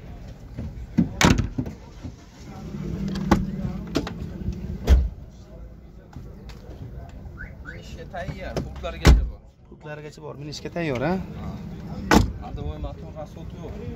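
A car door clicks and thuds as a hand works it.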